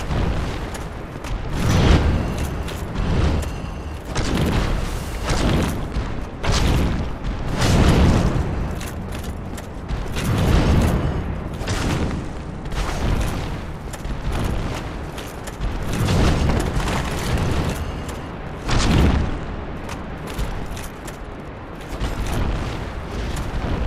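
Heavy blows thud and crash again and again.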